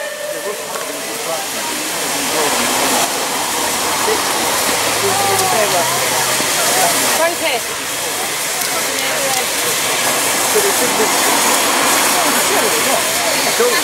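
Steam hisses steadily from a locomotive.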